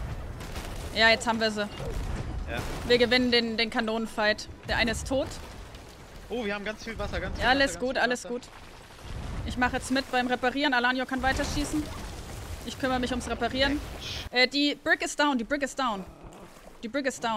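A young woman talks through a microphone.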